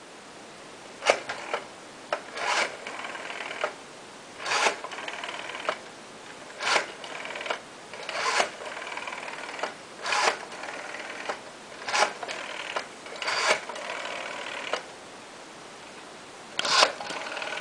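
A rotary phone dial whirs and clicks as it spins back, again and again.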